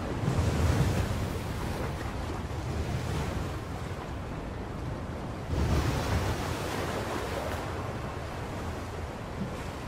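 Rough sea waves surge and crash in a strong wind.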